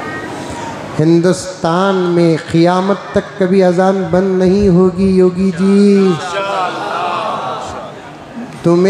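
A middle-aged man recites in a loud, drawn-out singing voice through a microphone.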